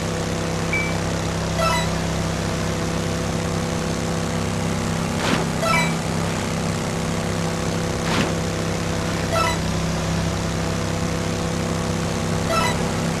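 A jet ski engine drones steadily.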